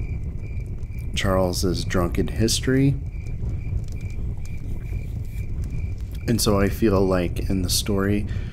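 A log fire crackles and pops.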